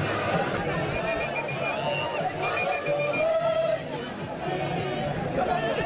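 Men chant and shout with excitement as they march.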